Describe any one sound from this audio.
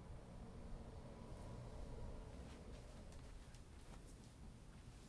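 Footsteps shuffle away quietly.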